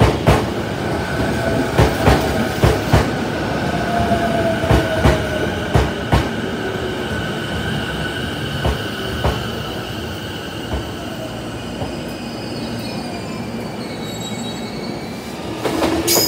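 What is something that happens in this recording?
Train brakes squeal as an electric commuter train slows.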